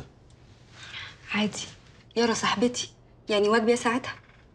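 A woman answers calmly nearby.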